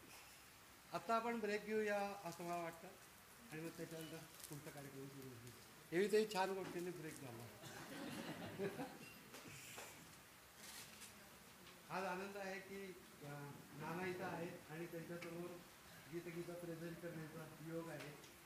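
An elderly man speaks calmly to an audience.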